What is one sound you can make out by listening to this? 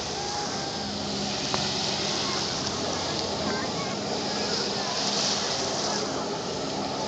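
Water sprays and hisses under a jet of spray.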